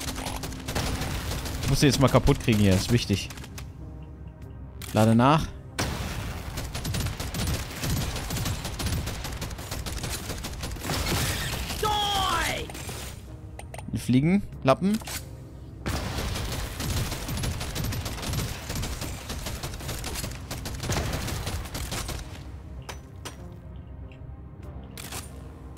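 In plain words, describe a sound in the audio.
Rapid gunfire and blasts crackle in a video game.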